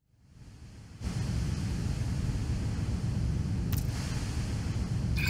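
A deep, steady rumbling roar swells up and fills the air.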